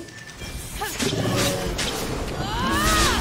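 Blows thud and clash as a creature is struck.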